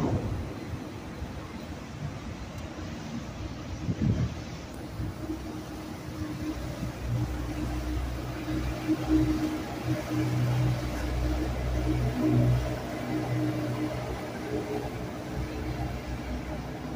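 Water splashes and churns against a boat's hull.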